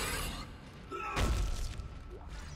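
A weapon fires a loud, short burst.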